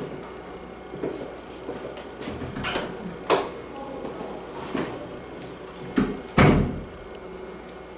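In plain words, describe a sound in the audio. Footsteps thud and fade away.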